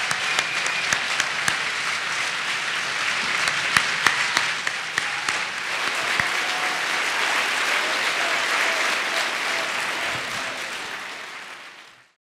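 A large audience claps and applauds loudly.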